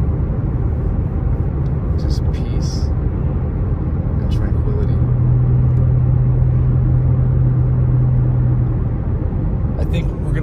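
A car engine hums steadily inside a moving vehicle.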